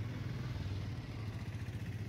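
A motorcycle engine idles nearby.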